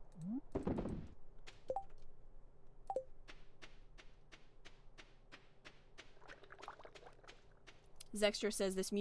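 Footsteps tap quickly in a steady rhythm.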